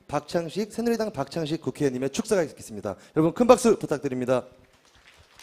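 A young man speaks into a microphone over loudspeakers in a large echoing hall.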